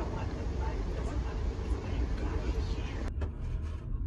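A young woman talks.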